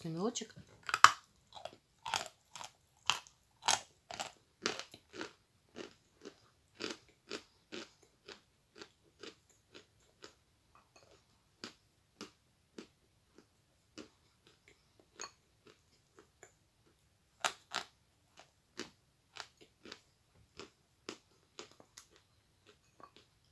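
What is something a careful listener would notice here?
A young woman chews and smacks her lips wetly close to a microphone.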